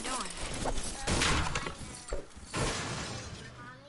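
A pickaxe strikes wood with sharp thuds.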